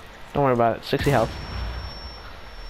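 Gunfire rattles in a short burst.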